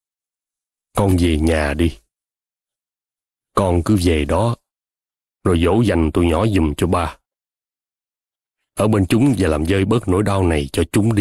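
A middle-aged man speaks calmly and earnestly.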